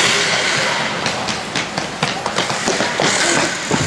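Hockey sticks clack and tap on the ice.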